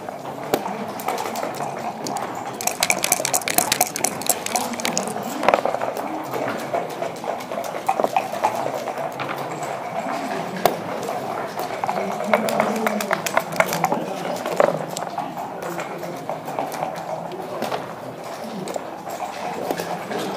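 Game pieces click and clack against a wooden board.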